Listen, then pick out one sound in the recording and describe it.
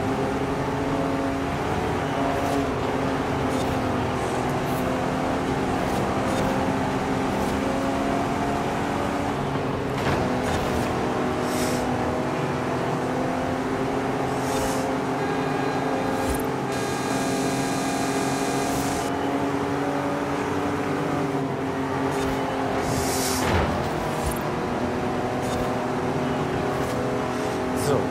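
A car engine roars steadily at high revs.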